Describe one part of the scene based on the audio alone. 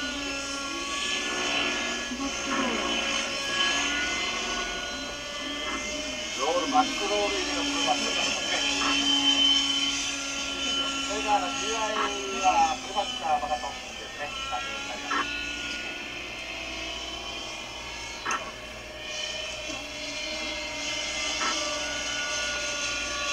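A small model helicopter's engine whines steadily overhead.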